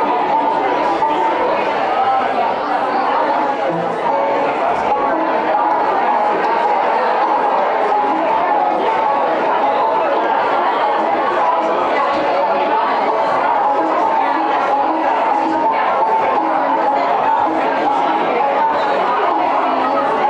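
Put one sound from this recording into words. A live band plays amplified rock music.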